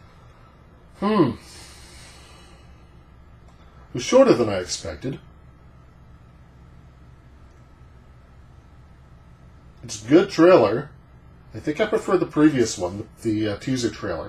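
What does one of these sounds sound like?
A middle-aged man talks calmly and close by, with pauses.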